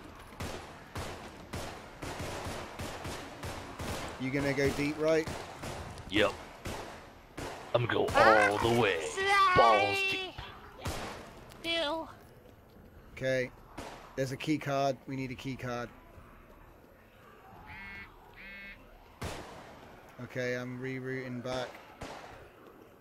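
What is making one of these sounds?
Pistol shots crack in sharp bursts.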